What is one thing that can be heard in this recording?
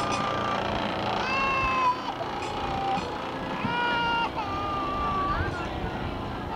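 A toddler girl cries and wails loudly close by.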